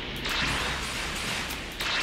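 An explosion bursts with a loud bang.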